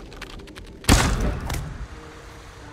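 Thunder cracks loudly and rumbles away.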